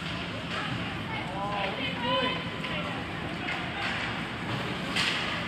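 Skate blades scrape and hiss on ice in an echoing rink.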